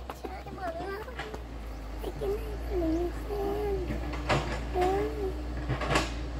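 A young girl speaks softly nearby.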